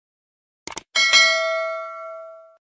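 A small bell chimes and rings out.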